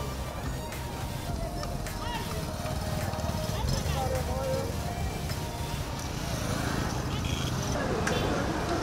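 Street traffic and passers-by rumble and murmur outdoors.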